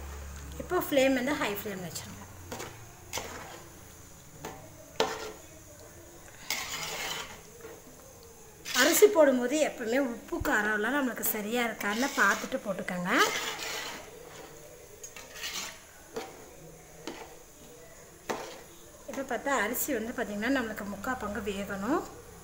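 A spatula stirs thick stew in a metal pot with wet squelching and scraping.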